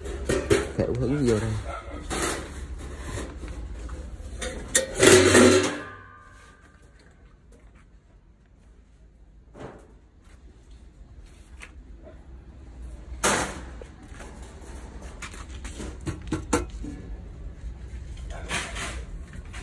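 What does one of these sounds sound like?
Metal parts clink and rattle as a hand handles them.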